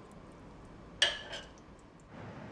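A ceramic plate clinks against a bowl.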